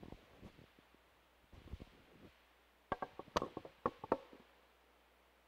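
Sharp knocks and rustles sound close to a microphone.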